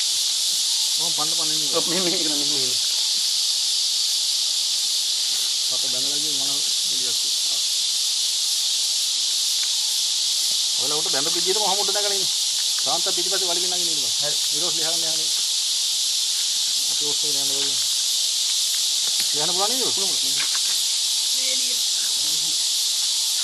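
A man speaks calmly in short phrases nearby.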